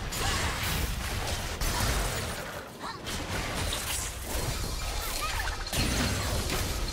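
Game spell blasts and hits crackle and boom in a busy fight.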